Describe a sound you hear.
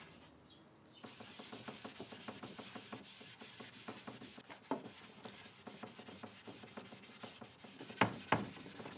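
A hand rubs quickly back and forth across a wooden surface in short, rhythmic strokes.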